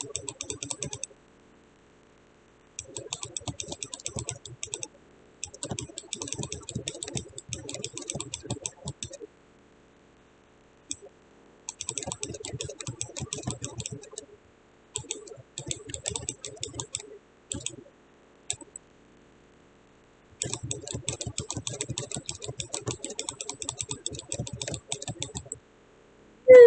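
Rapid clicking game effects sound as a character attacks.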